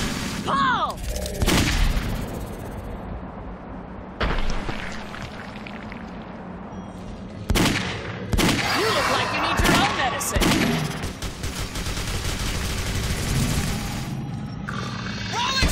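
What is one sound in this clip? A rifle fires in loud bursts.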